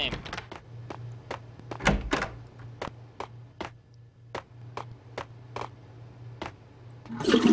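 Footsteps tap steadily on a hard tiled floor.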